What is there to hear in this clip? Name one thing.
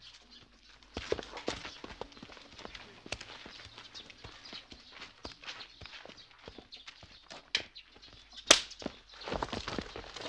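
Fists knock and bang on a wooden door.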